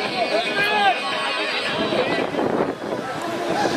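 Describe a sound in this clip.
A crowd of men shouts and chants loudly outdoors.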